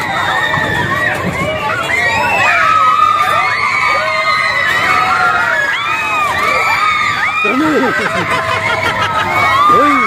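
A fairground ride whirs and rumbles steadily.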